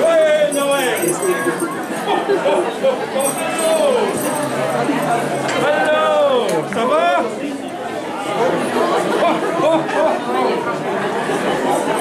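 A man talks jovially nearby.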